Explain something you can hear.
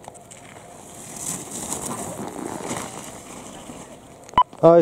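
Skis scrape and hiss across packed snow close by.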